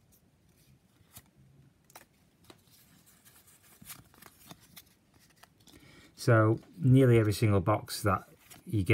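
Trading cards rustle and click softly as they are shuffled by hand.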